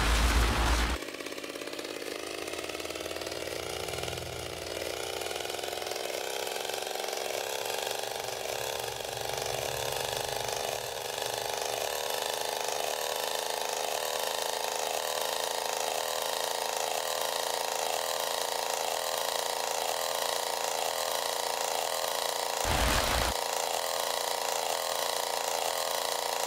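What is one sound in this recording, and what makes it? A small kart engine hums steadily and rises slowly in pitch as it speeds up.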